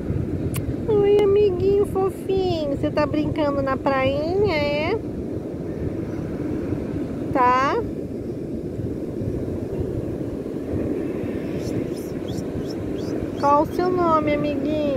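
A dog whines in high, gliding squeals, close by.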